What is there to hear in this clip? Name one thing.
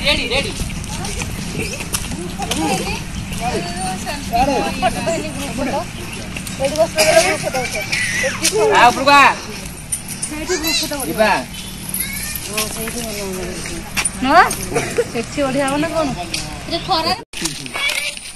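Adult women chat with animation nearby, outdoors.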